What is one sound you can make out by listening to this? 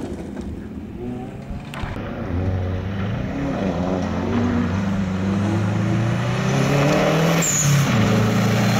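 A rally car engine roars closer, revving hard and shifting gears.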